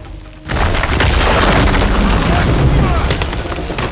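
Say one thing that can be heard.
Stone blocks crash and tumble down with a deep rumble.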